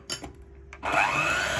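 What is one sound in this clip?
An electric hand mixer whirs.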